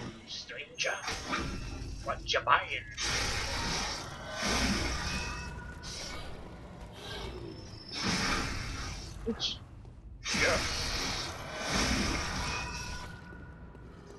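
Weapons clash and slash in a fight.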